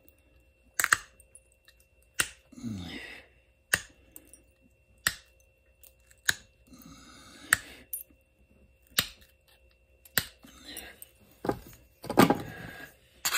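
Sharp clicks ring out as flakes snap off a stone.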